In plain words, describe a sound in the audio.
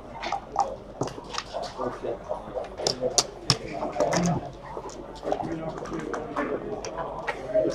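Dice rattle and tumble across a board.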